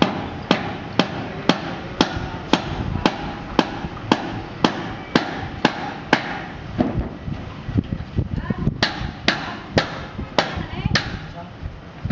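A hammer strikes metal in steady, ringing blows.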